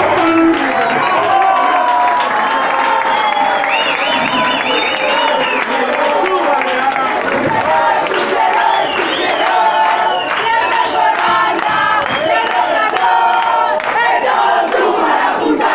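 Loud music plays through speakers.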